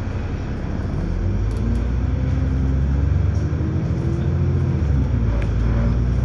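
A bus engine hums and rises in pitch as the bus speeds up.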